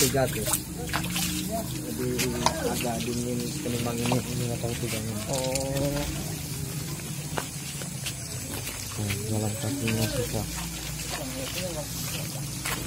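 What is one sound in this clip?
Young men talk quietly close by outdoors.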